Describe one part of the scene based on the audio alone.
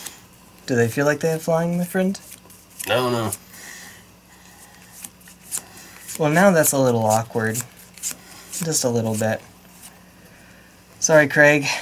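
Playing cards riffle and slide softly as they are shuffled by hand.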